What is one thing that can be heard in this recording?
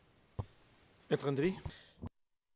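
An elderly man speaks briefly into a microphone.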